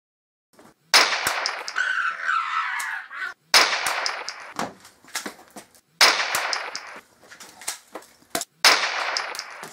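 Gunshots bang sharply, one after another.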